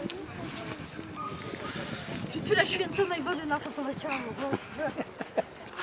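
A middle-aged woman laughs and talks close by.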